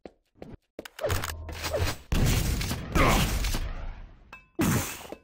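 A grenade launcher fires with heavy booming blasts.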